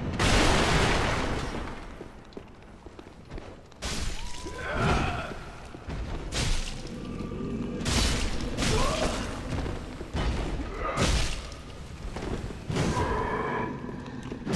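Swords swing and clash in heavy, ringing blows.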